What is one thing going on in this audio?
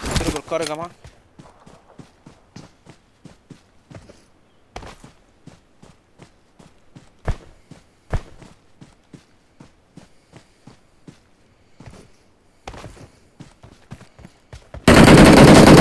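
Quick footsteps crunch through grass.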